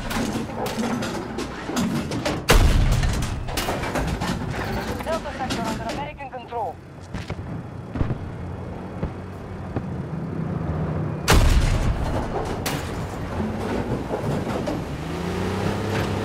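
Gunfire and explosions crack in the distance.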